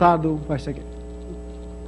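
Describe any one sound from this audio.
A man speaks briefly, heard through a microphone in a room.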